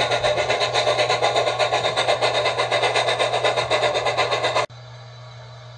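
A model steam locomotive chuffs in a fast, steady rhythm.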